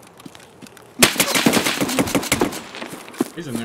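Gunshots ring out in a rapid, loud burst.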